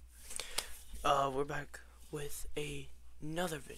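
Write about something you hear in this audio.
A young man talks close to a microphone with animation.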